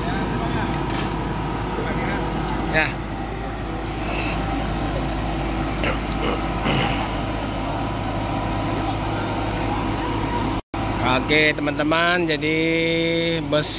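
Men talk outdoors nearby.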